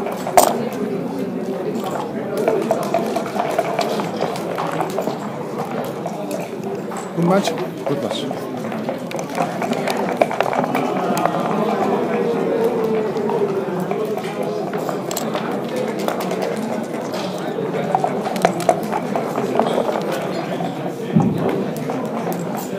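Game checkers click sharply as they are moved on a board.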